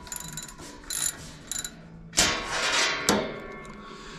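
Metal parts of a machine clank and rattle under a hand tool.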